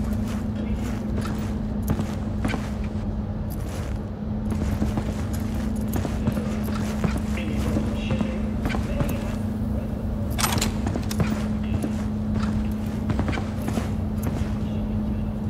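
Footsteps tap on a hard floor at a walking pace.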